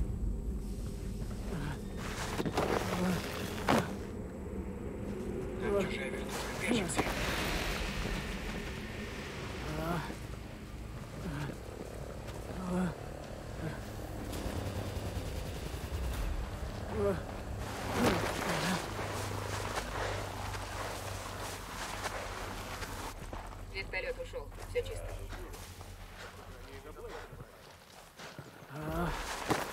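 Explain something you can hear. Footsteps crunch on rocky gravel.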